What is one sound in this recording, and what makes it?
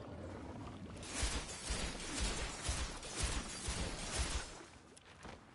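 Icy magic blasts whoosh out in quick bursts.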